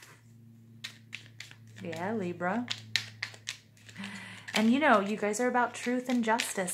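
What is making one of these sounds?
Playing cards riffle and flick softly as they are shuffled.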